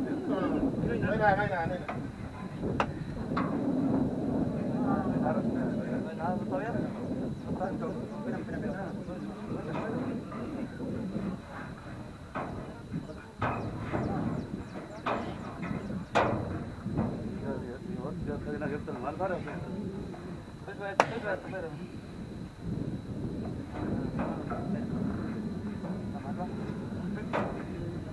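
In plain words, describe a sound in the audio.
Several men talk nearby, outdoors.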